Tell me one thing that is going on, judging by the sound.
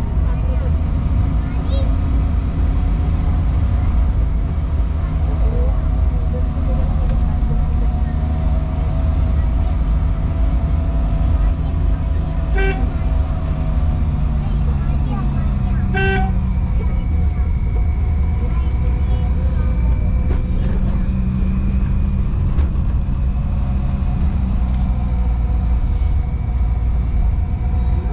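Tyres rumble on rough tarmac.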